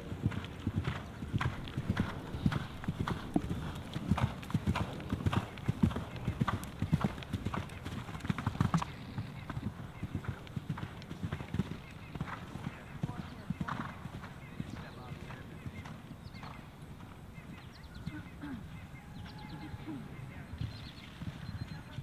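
A horse gallops, its hooves thudding rhythmically on grass.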